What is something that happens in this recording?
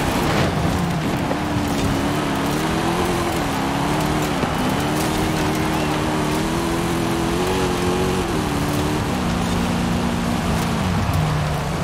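Tyres crunch and spray over loose gravel.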